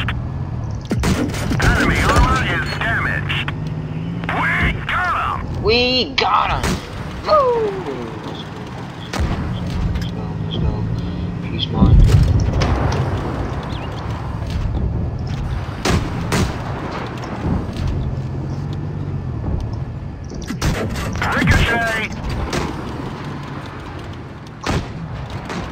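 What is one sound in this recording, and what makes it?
A tank cannon fires in sharp bangs.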